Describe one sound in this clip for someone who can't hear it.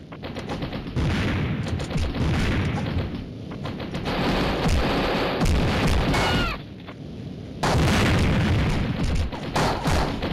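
Gunshots from a video game fire in rapid bursts.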